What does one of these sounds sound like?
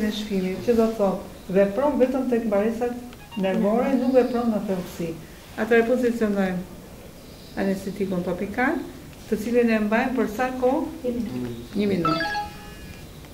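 A woman speaks calmly and steadily, close by.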